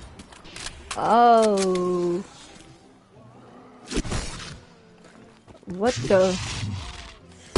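A zombie groans with a low, rising moan.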